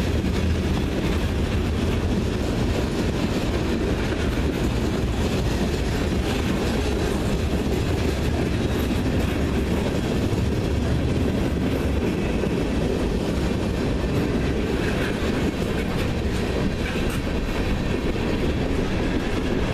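A freight train rumbles past close by.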